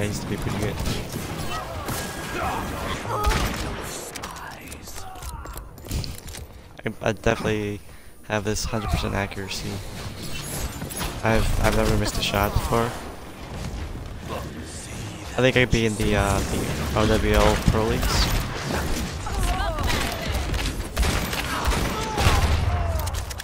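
Gunshots fire rapidly in a game.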